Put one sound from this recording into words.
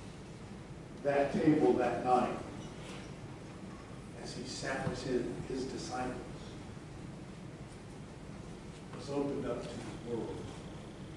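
A man speaks calmly at a distance in an echoing hall.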